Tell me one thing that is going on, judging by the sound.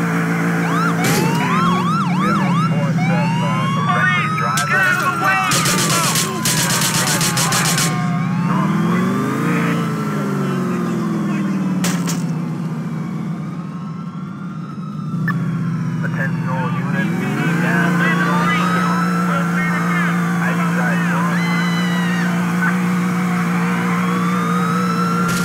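A police siren wails up and down nearby.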